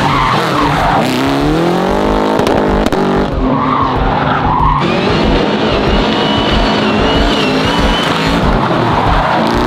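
Tyres screech on the pavement.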